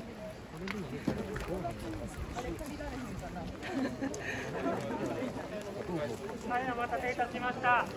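A crowd of people murmurs nearby outdoors.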